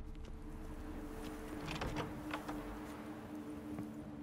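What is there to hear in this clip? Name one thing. A heavy door unlocks and swings open.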